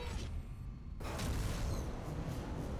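A spaceship engine bursts into a loud whooshing boost.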